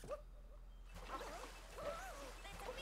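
A game character splashes into icy water.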